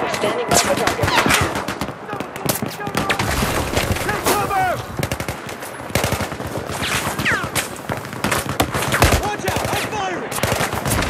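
Gunfire cracks in rapid bursts nearby.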